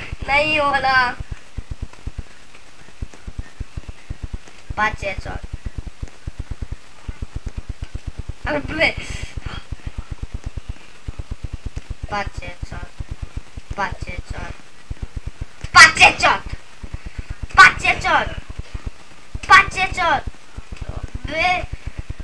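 A young boy talks with animation, close to a microphone, in short bursts.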